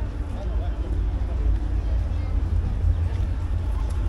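Cars drive past on a wet road.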